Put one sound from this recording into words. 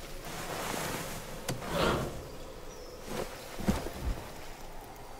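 A metal pry bar scrapes as it is picked up.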